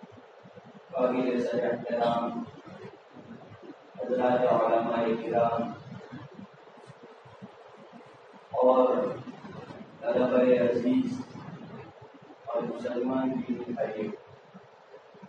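A man speaks slowly and earnestly into a microphone, in phrases with pauses, in a room with slight echo.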